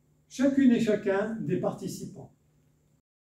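An elderly man reads out through a microphone.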